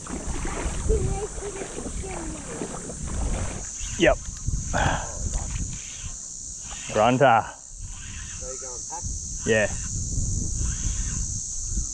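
A fishing reel clicks and whirs as its handle is cranked.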